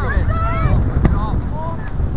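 A ball is kicked with a thump.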